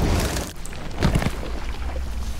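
Heavy boots step on a metal floor.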